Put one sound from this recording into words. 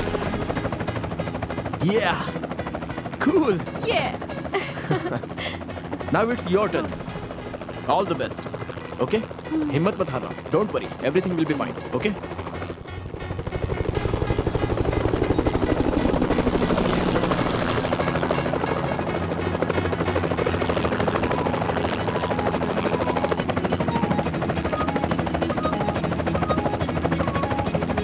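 A helicopter's engine and rotor roar steadily.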